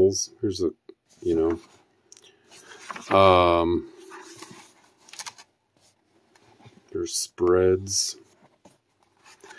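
Paper pages rustle as a book's pages are turned.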